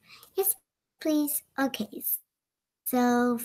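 A young girl speaks calmly over an online call.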